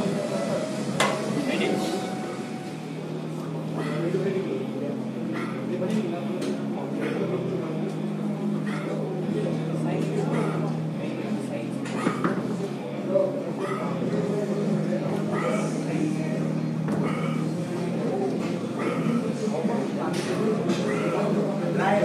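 Weight plates on a barbell clink and clank.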